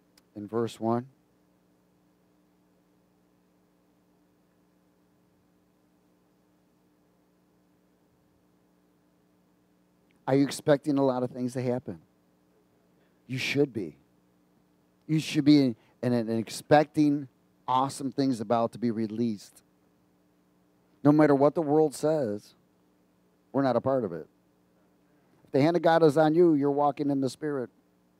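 A middle-aged man speaks with animation through a headset microphone, pausing between phrases.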